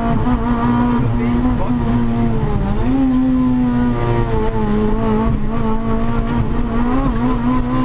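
Tyres rumble over a wet road.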